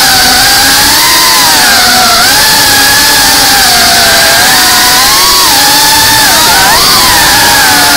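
Small drone motors whine loudly and steadily, rising and falling in pitch.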